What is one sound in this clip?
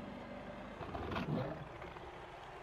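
A beast roars loudly.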